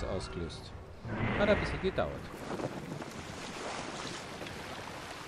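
Water laps and splashes against a wooden boat.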